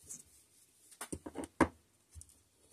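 A small glass bottle is set down with a soft knock.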